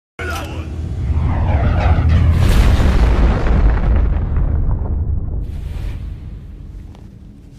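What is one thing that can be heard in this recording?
Flames burst up with a deep, loud roaring whoosh that slowly fades.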